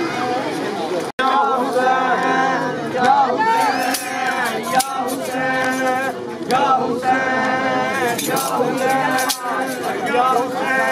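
A group of men chants a mournful lament loudly.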